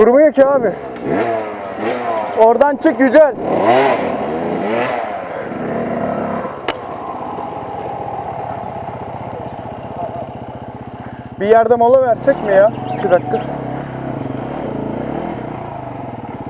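A motorcycle engine idles close by with a low steady rumble.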